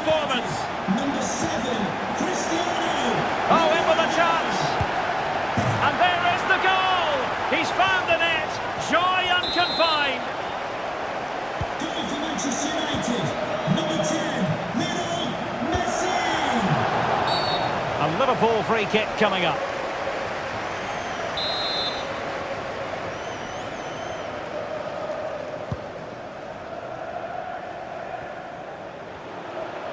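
A large stadium crowd roars steadily, quieting toward the end.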